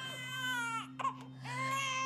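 A teenage girl sobs close by.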